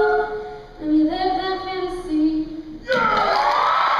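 A young woman sings solo into a microphone.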